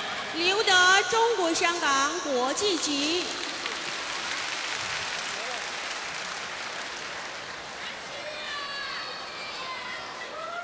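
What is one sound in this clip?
A large crowd murmurs in a big echoing hall.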